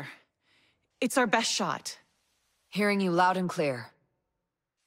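A young woman answers.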